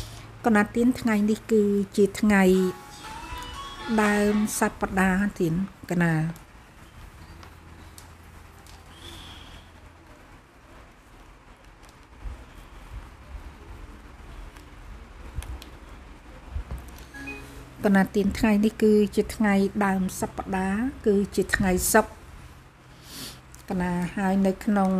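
A middle-aged woman speaks calmly into a microphone close by.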